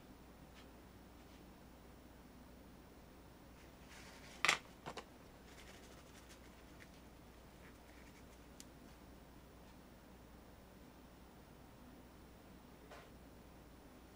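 A paintbrush brushes softly across canvas.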